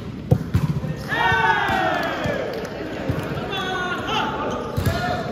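Sneakers squeak on the hard court floor.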